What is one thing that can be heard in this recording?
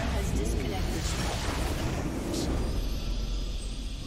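A large blast roars and rumbles.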